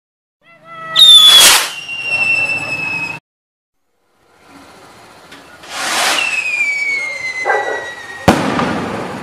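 A firework rocket whooshes upward with a shrill whistle.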